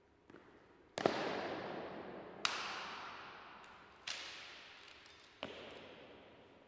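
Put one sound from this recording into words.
Boots stamp sharply on a stone floor, echoing through a large hall.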